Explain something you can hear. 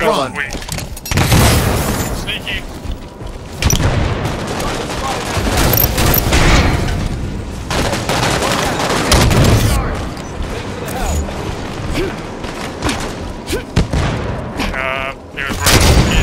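Gunfire bursts rapidly from a rifle, close by.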